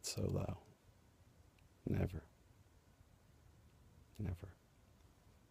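A man speaks a few short words softly, close by.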